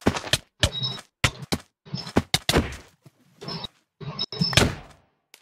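Sharp sword blows land in quick succession.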